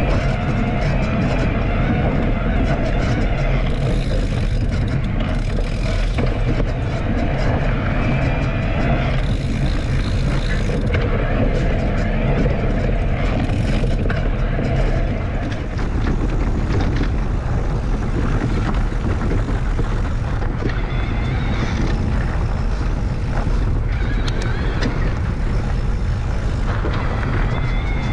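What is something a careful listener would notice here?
Wind buffets the microphone with a steady low rumble.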